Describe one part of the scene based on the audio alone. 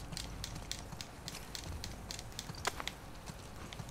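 Leaves rustle as a woman pushes through plants.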